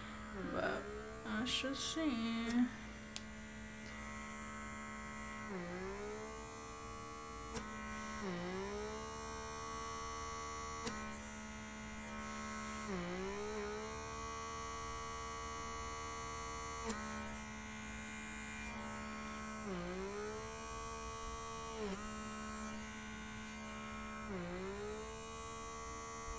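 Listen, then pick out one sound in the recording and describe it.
A small suction device hums steadily, dropping in pitch each time it grips the skin.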